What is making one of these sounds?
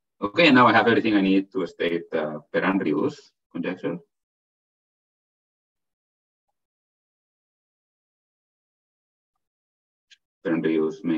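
A man speaks calmly over an online call, pausing between phrases.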